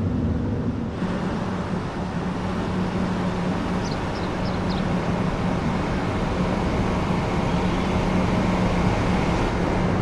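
A train idles with a low steady hum beside a platform.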